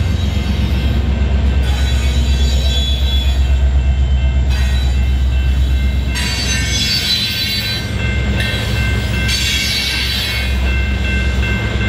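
Freight cars clatter and rumble over the rails.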